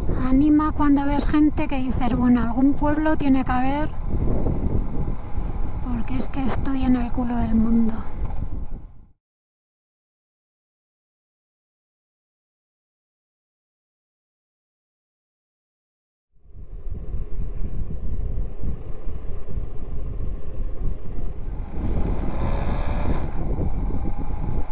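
A motorcycle engine hums and revs while riding.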